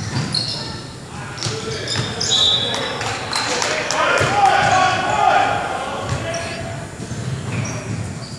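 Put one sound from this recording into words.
Sneakers squeak sharply on a wooden court in a large echoing gym.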